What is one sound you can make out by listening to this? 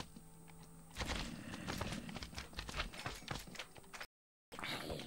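Stone blocks crunch as they are broken.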